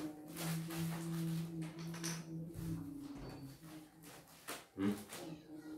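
A tissue rustles as it is pulled from a packet.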